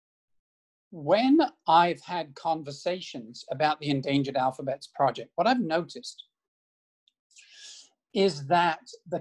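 A man speaks calmly at length over an online call.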